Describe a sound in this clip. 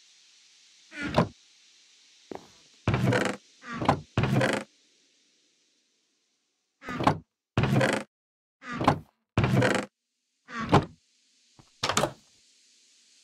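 A wooden chest creaks open and thuds shut several times.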